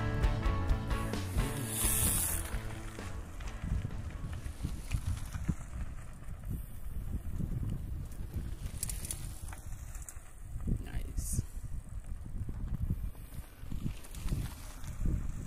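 Bicycle tyres crunch over a dirt track.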